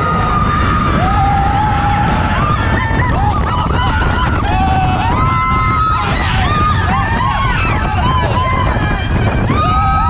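A young woman screams and laughs with excitement close by.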